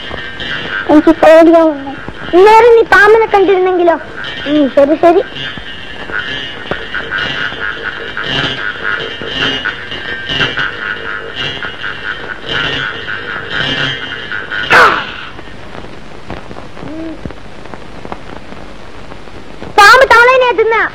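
A young girl sings in a high, clear voice.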